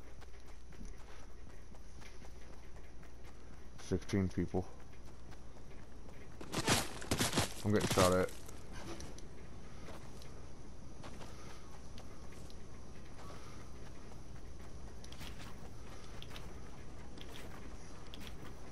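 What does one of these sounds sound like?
Footsteps patter quickly across grass.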